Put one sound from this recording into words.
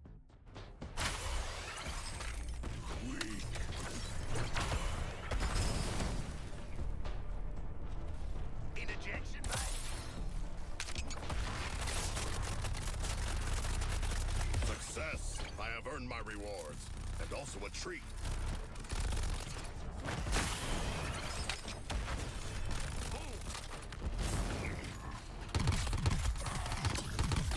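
Game blasts and impacts boom loudly.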